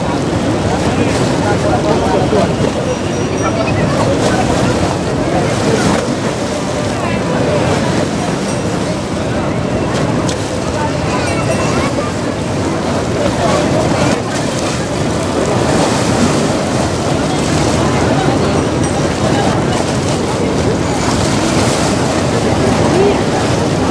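River water laps and splashes against stone steps.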